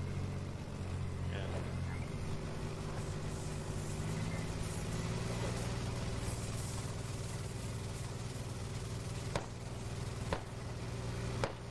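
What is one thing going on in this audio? A tank engine rumbles steadily as the tank drives.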